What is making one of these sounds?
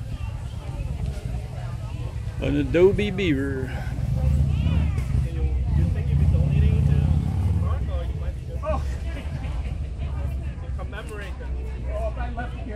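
Men and women talk casually nearby outdoors.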